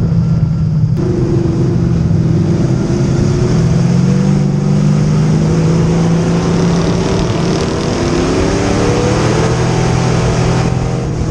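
Other race car engines roar close by.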